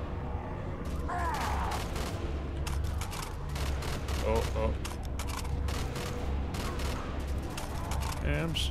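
Monsters growl and snarl nearby.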